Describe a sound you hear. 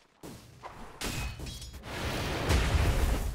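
Game spell effects whoosh and crackle loudly.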